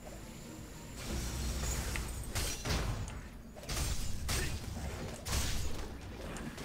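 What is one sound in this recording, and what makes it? Sword strikes and magic blasts crash in a fight.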